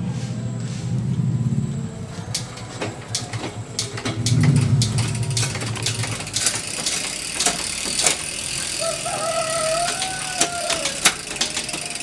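A bicycle's rear wheel spins with a whirring hum.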